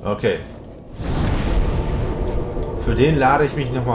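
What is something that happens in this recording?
A fire flares up with a loud whoosh.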